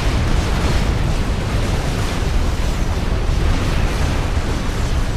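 Weapons fire rapidly in a dense, steady barrage.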